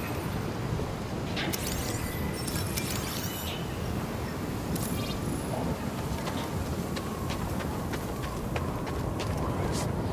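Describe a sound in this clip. Footsteps crunch on snowy ground.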